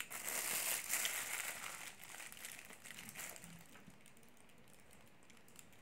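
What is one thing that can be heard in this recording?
A young woman bites and chews food close to a microphone.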